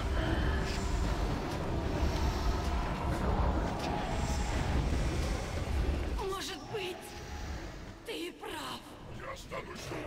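Magic spells crackle and whoosh in a busy battle.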